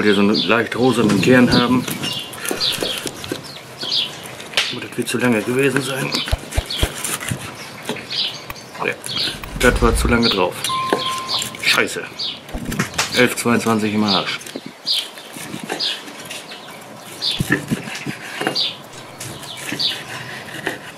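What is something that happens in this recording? A knife saws back and forth through a crusty grilled steak.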